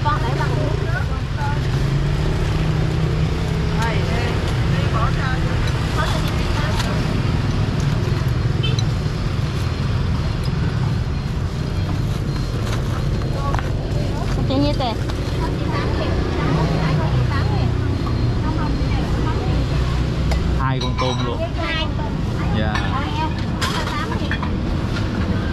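Street traffic and a busy crowd murmur outdoors.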